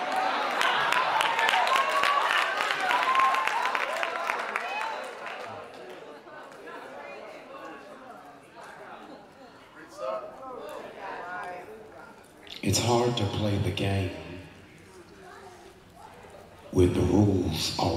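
A man speaks into a microphone over loudspeakers in an echoing hall.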